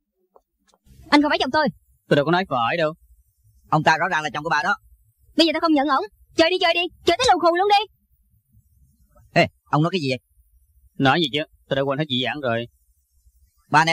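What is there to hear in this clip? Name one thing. A man speaks loudly with animation up close.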